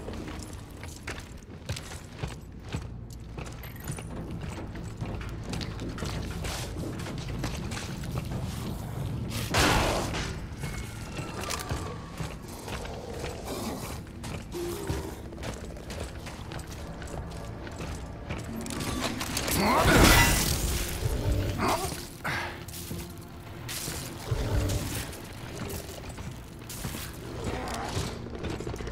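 Heavy armoured footsteps clank on a metal floor.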